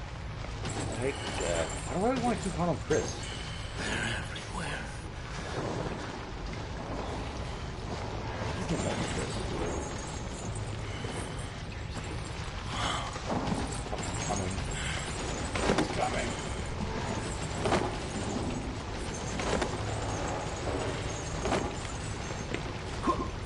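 Young men talk excitedly into a microphone.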